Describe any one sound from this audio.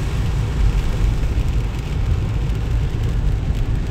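A windscreen wiper swishes across the glass.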